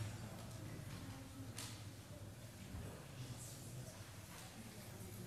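A woman speaks quietly through a microphone in a large echoing hall.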